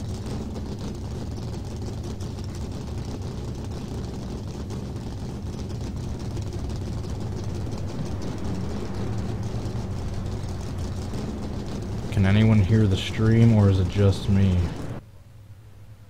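A race car engine idles with a low, steady rumble.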